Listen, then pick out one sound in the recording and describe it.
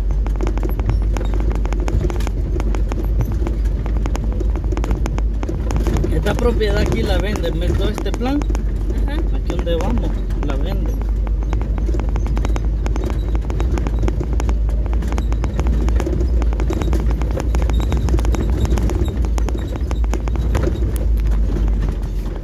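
A vehicle bumps and rattles over a rough dirt track.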